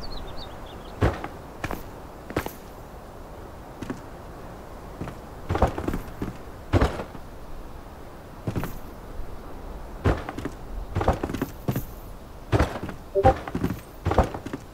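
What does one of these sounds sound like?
Wooden pieces knock and thud into place, one after another.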